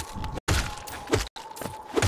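Brittle objects shatter with a crunch.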